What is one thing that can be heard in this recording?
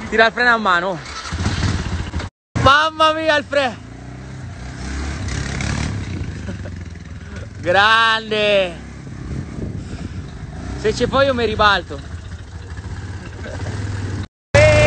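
A quad bike engine runs and revs nearby.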